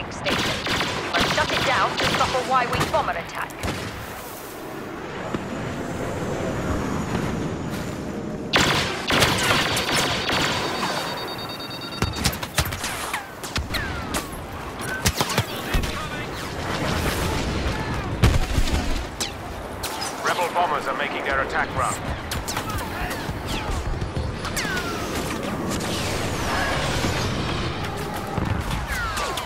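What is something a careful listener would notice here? Blaster shots crack and zip in rapid bursts.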